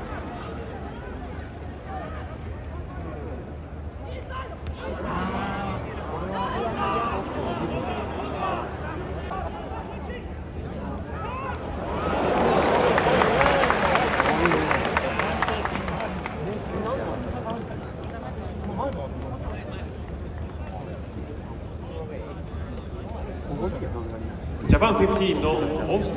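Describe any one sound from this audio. A large stadium crowd murmurs and calls out throughout.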